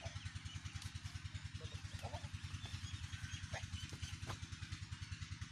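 A buffalo's hooves shuffle on dry dirt and leaves.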